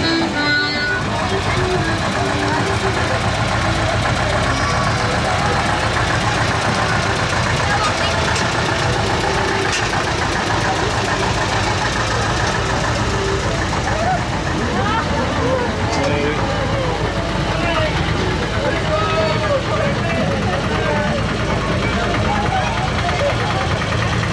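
A tractor engine rumbles and chugs past close by.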